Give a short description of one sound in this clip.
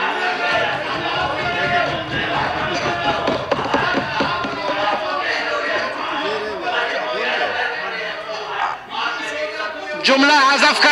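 Several men talk over one another, loud and agitated.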